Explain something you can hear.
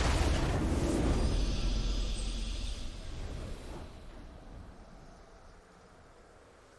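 A triumphant fanfare swells and slowly fades.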